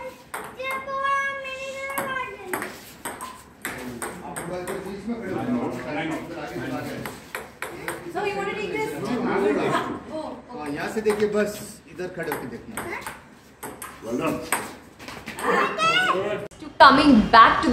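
A ping-pong ball clicks back and forth on a table and paddles.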